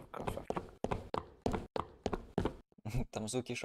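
Footsteps tap quickly on hard pavement.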